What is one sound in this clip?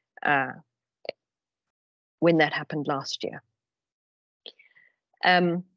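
A woman speaks calmly through an online call microphone, in short phrases with pauses.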